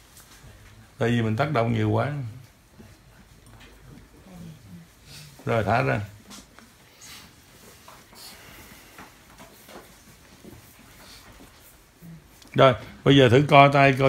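An older man speaks calmly close by, in short bursts.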